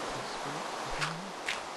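A dirt block is placed with a soft thud.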